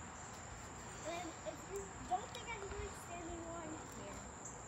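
A young girl talks excitedly nearby.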